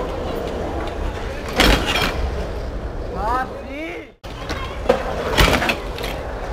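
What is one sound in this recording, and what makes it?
A wheelchair lands with a hard thump on concrete.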